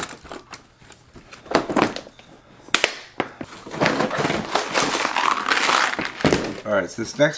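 A plastic box clicks and rattles as it is handled.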